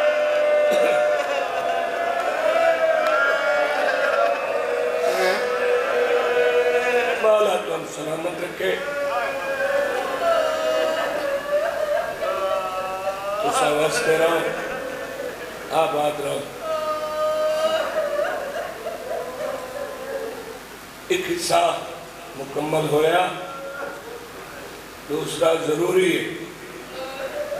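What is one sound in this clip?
A man chants with deep feeling into a microphone, heard through loudspeakers in an echoing hall.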